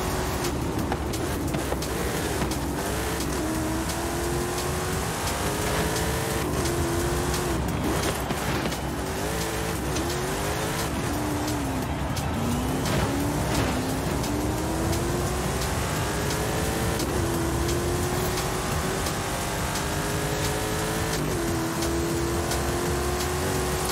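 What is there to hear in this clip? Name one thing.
A car engine roars loudly, its pitch rising and falling as it speeds up and shifts gears.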